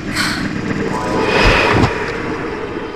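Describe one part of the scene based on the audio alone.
A magic spell crackles and fizzes as it is cast.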